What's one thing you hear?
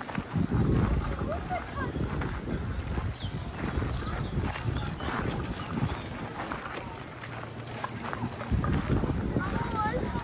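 A group of young people chat in the distance.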